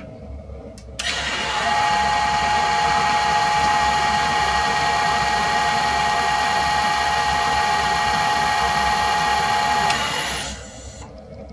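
A lathe motor starts up and runs with a steady high whine, then winds down.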